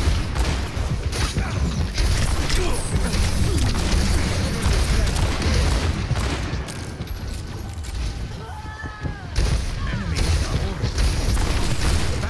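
Energy blasts whoosh and explode.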